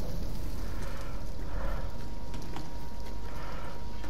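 A fire crackles and roars nearby.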